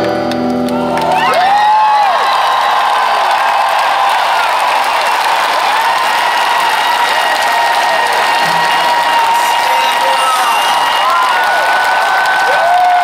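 Guitar feedback whistles and howls over distorted noise.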